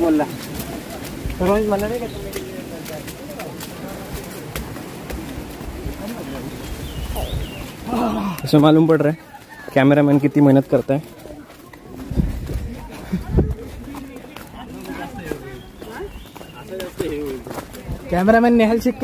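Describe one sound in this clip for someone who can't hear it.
Several young men talk outdoors.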